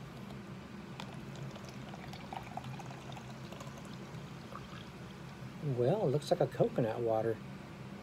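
A drink fizzes as it is poured into a cup.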